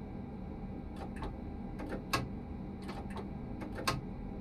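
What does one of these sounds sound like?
Train wheels clack over rail joints in quick pairs.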